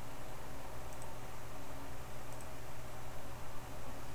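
A mouse clicks.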